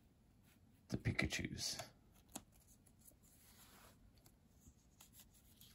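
Trading cards rustle and slide as a hand handles them.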